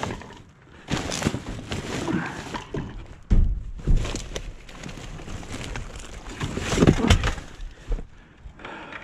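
Plastic bags rustle and crinkle close by.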